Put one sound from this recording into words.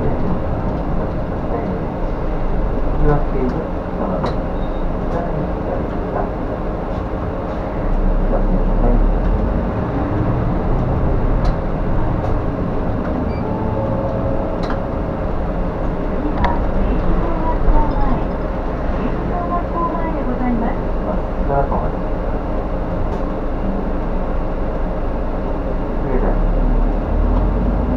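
A bus engine hums and rumbles steadily from inside the cabin.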